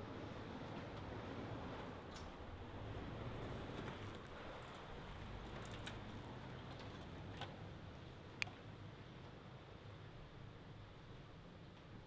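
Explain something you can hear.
A vehicle rumbles faintly over a gravel track far below.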